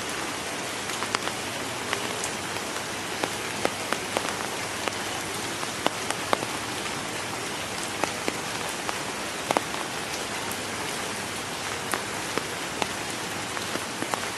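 A cassowary's feet splash through shallow muddy water.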